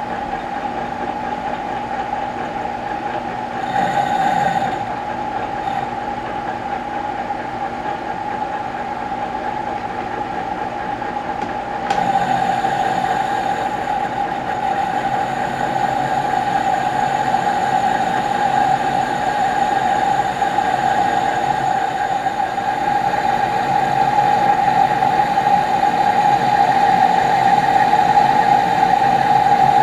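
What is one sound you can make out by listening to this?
A lathe spins with a steady high whine.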